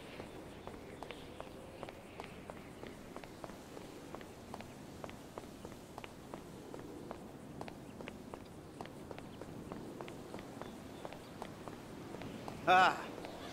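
Footsteps run quickly on a hard stone floor.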